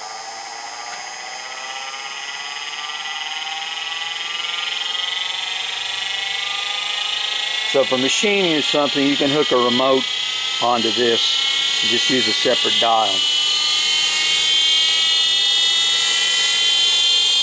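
An electric motor whines, its pitch rising steadily as it speeds up.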